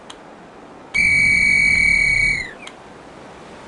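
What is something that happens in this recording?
A loud electronic warning tone sounds and then drops away.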